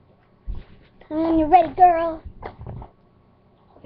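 A young girl speaks animatedly close by.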